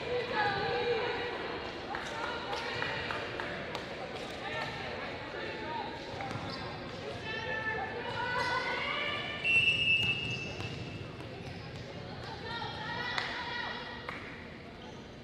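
Young women shout and cheer across a large echoing gym.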